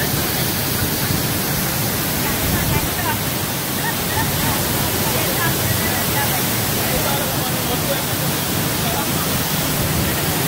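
A mountain stream rushes steadily over rocks outdoors.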